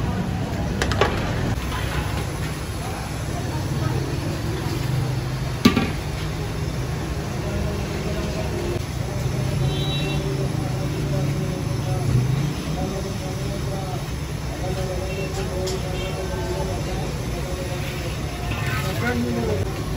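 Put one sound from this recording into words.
A metal bowl clanks against the rim of a pot.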